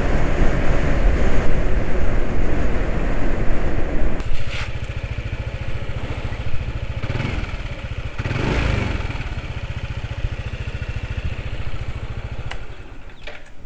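A motor scooter engine hums steadily.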